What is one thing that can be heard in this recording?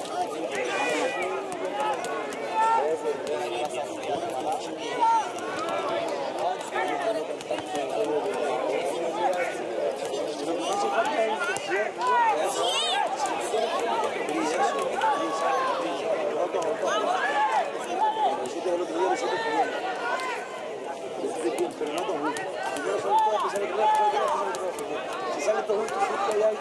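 A crowd of spectators chatters and calls out nearby, outdoors.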